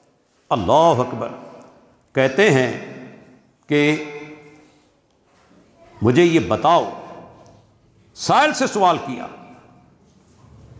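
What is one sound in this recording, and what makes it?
A middle-aged man preaches in a chanting voice through a microphone, his words echoing in a reverberant hall.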